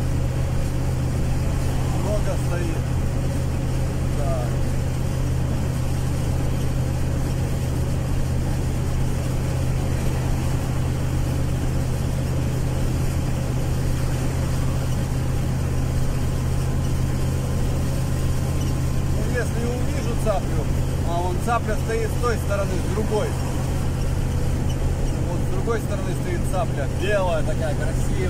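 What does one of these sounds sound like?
Tyres roll over the road at speed.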